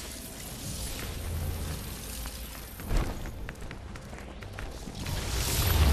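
Footsteps crunch over rubble.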